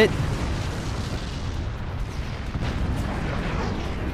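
Explosions boom and crackle as structures break apart.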